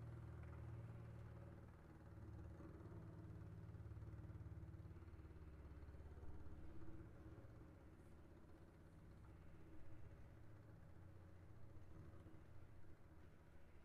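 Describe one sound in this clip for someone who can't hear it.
A violin plays softly.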